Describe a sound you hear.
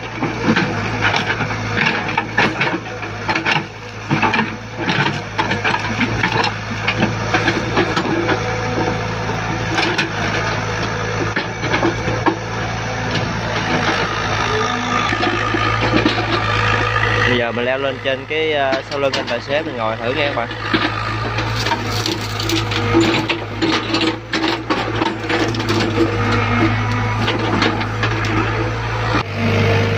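Wet mud and clods thud and scrape as an excavator bucket digs.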